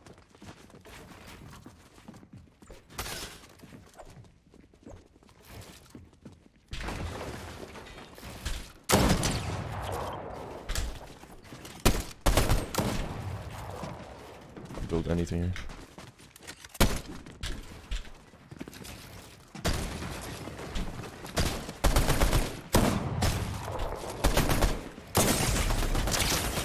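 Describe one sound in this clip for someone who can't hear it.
Gunshots and building clatter burst out in quick bursts from a video game.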